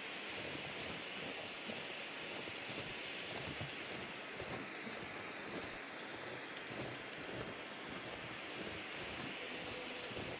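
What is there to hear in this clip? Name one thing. A road flare hisses and crackles steadily.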